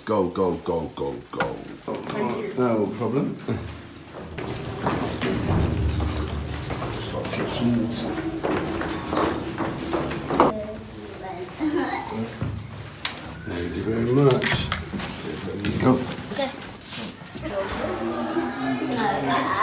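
Young girls chatter and laugh excitedly nearby.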